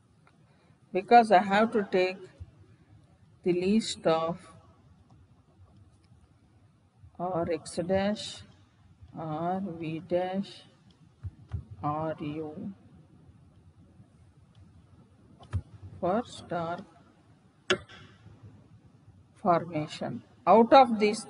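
A woman speaks calmly in short phrases over a microphone.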